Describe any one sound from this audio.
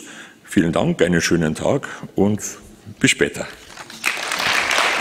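An elderly man speaks calmly through a microphone in a large hall.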